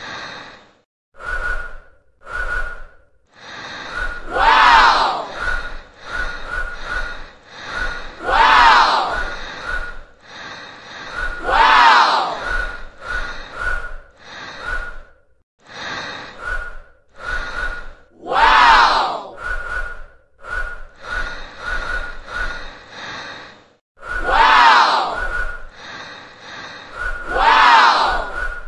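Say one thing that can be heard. Air blows in short, forceful puffs through a tube.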